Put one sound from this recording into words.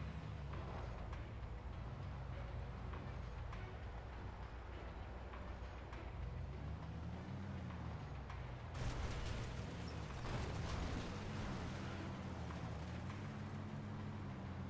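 Tyres crunch over rough ground.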